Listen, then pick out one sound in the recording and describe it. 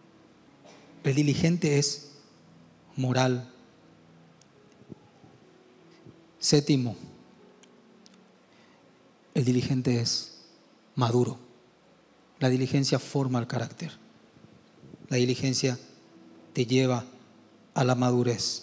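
A young man speaks slowly and deliberately into a microphone, with pauses.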